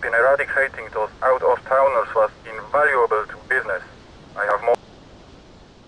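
A man speaks calmly over a phone.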